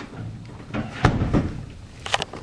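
A heavy door swings shut with a thud.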